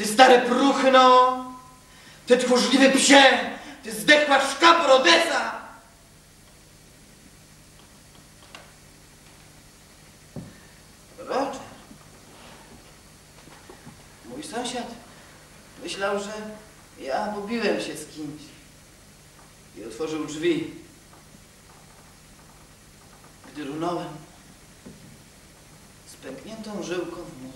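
A young man speaks loudly and emotionally at first, then quietly with long pauses.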